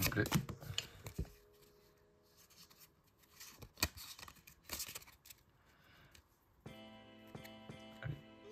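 Playing cards slide and flick against one another.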